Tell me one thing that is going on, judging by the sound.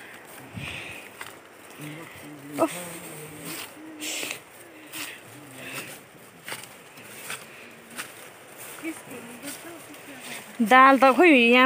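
Footsteps crunch and rustle through tall grass and brush.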